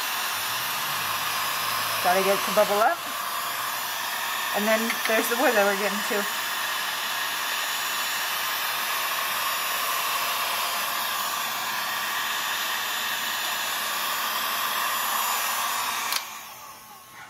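A heat gun blows with a steady, loud rushing hiss.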